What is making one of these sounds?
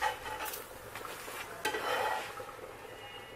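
A metal spatula scrapes across a hot pan.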